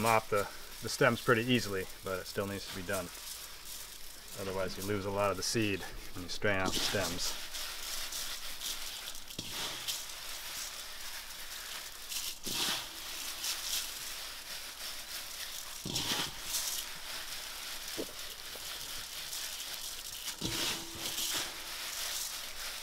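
Leaves and soil rustle and crackle as hands mix them.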